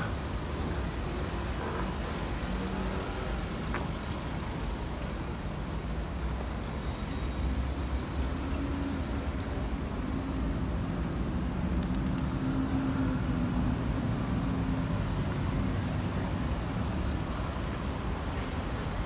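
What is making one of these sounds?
City traffic hums outdoors.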